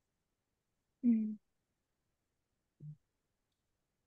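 A young man speaks briefly over an online call, with long pauses.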